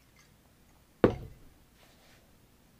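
A glass knocks against a hard surface.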